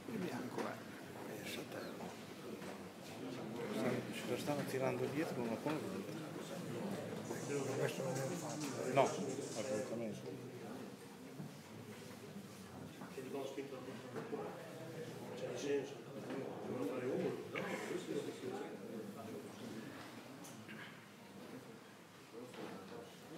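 Several men talk quietly nearby.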